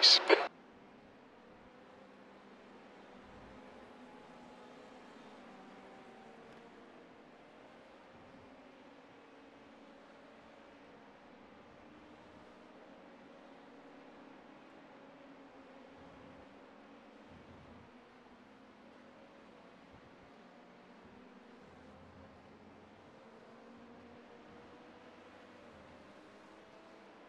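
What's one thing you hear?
A race car engine drones faintly and shifts in pitch.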